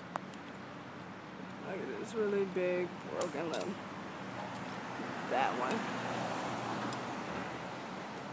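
Leaves rustle in a breeze outdoors.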